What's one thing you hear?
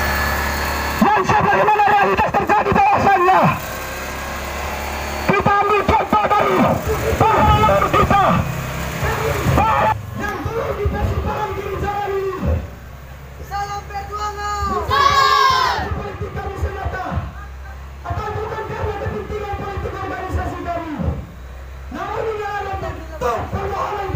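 A man speaks loudly through a microphone over booming loudspeakers, heard outdoors.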